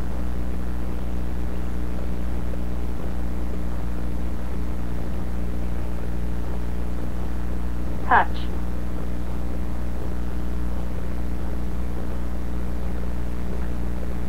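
An electronic device hums steadily and low.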